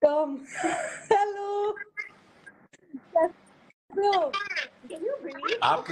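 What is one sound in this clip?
A young woman laughs heartily.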